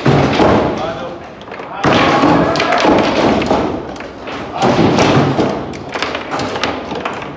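A foosball ball knocks against the figures and the table walls.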